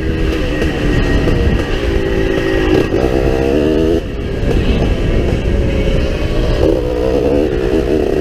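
A motorbike engine revs and whines as it rides a dirt trail.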